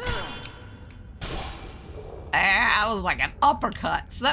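A blade swishes through the air.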